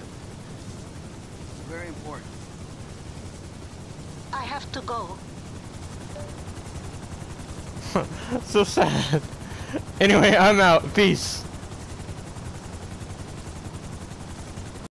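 A helicopter's rotor thumps steadily as it hovers close by.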